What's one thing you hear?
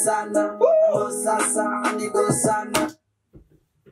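Rap music with a man rapping plays through a speaker and then stops abruptly.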